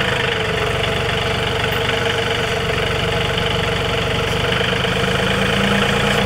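A pickup truck engine idles steadily close by.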